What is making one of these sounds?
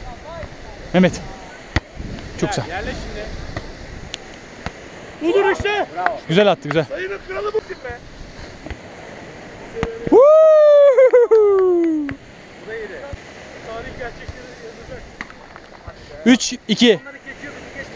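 A volleyball is hit with dull thuds.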